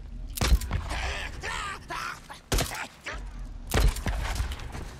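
A pistol fires several loud, sharp shots.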